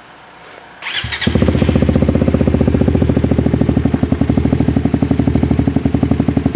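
A motorcycle engine starts and idles with a steady rumble.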